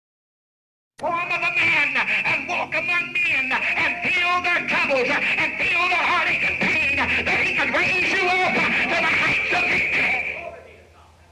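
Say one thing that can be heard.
A man speaks with animation.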